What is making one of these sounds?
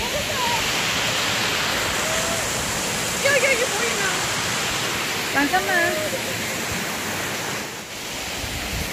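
Water rushes over rocks in a stream.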